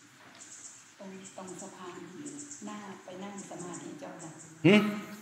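A man speaks calmly and slowly through a microphone.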